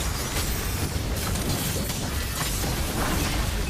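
Fiery spell blasts crackle and burst.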